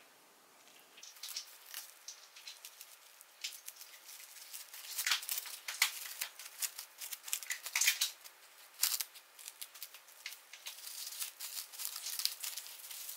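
Plastic wrap crinkles and rustles up close.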